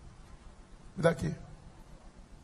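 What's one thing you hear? A man speaks through a microphone.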